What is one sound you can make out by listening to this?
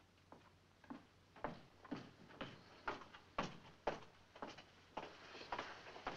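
High heels click on a hard floor as a woman walks in.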